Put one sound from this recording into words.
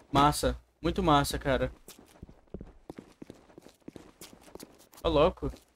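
Footsteps tap on a hard floor and stairs.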